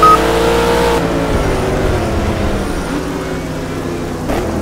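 A sports racing car's engine drops in pitch as it slows for a corner.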